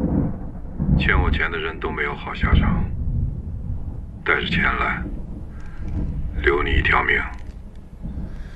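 A man speaks in a low, threatening voice into a phone.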